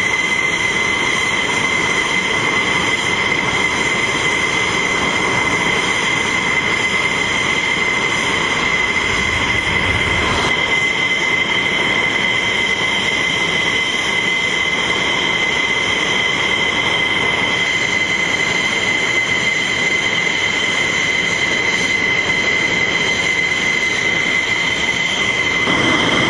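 A jet engine whines loudly and steadily.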